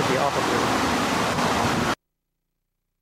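Water splashes and rushes against a wall.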